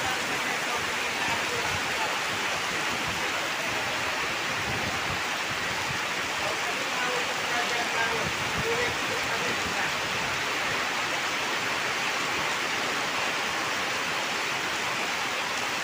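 Heavy rain drums on a canvas awning overhead.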